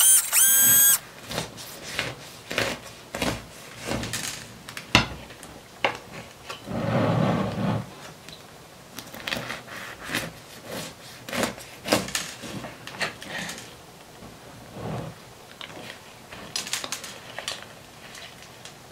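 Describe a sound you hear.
A knife saws through a crusty brioche with soft crunching and crackling.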